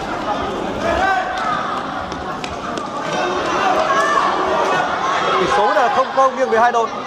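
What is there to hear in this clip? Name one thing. Spectators chatter and shout in a large echoing hall.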